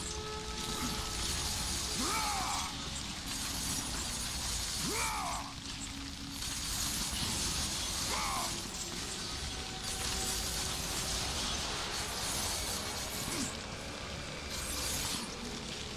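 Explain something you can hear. Flames burst with a rushing roar.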